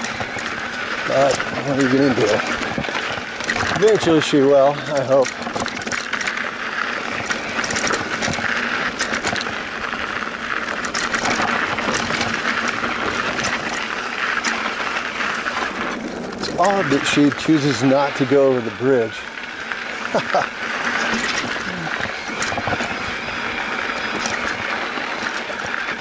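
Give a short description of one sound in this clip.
Bicycle tyres crunch and rattle over a dry dirt trail.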